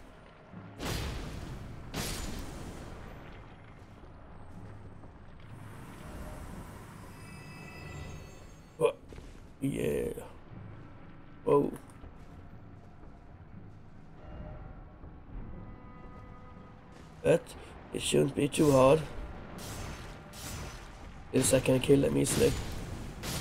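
Heavy metal blades clash and clang in a fight.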